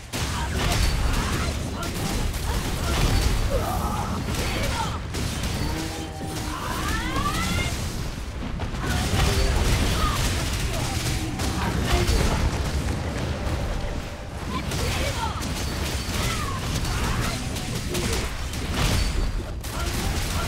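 Loud explosions boom as magic attacks land.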